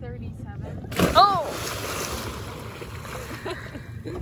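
Water splashes loudly as a young man falls in.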